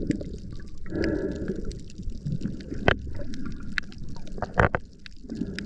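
Air bubbles rumble and gurgle close by underwater.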